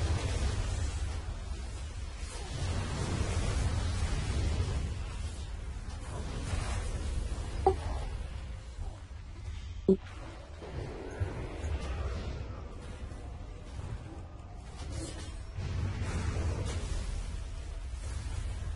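Magic spell effects crackle and boom during a fight.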